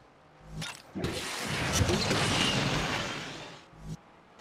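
A turbo boost whooshes loudly.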